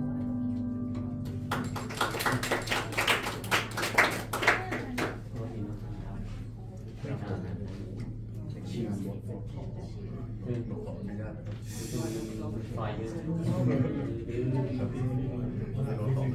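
A double bass is plucked in a walking line.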